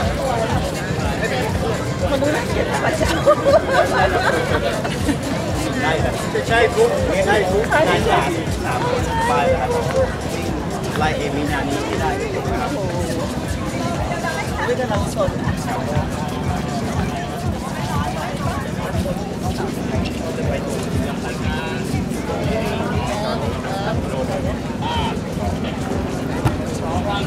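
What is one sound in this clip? A crowd of people chatter all around outdoors.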